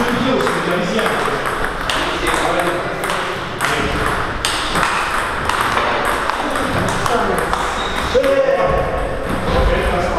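Table tennis balls click sharply off paddles and tables in a large echoing hall.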